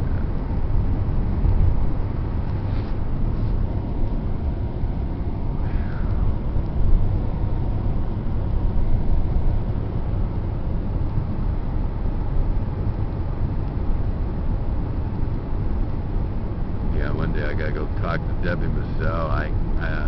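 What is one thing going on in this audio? A car engine hums and tyres roll steadily on a road, heard from inside the car.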